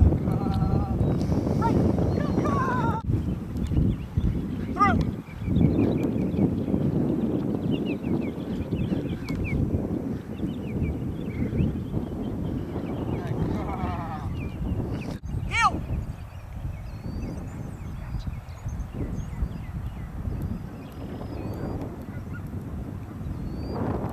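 Wind rumbles steadily across an open field.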